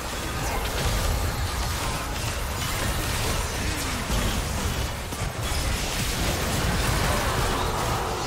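Game spell effects crackle and burst in a fast, busy clash.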